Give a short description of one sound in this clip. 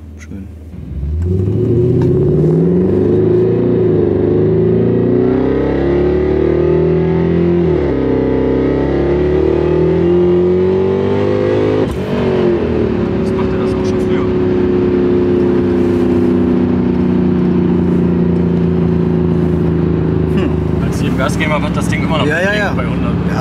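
A car engine revs hard and roars as the car speeds up.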